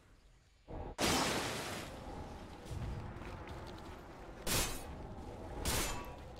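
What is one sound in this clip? Magic attacks whoosh and zap in short bursts.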